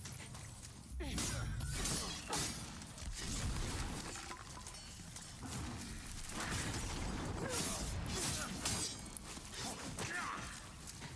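Swords clash and slash in quick blows.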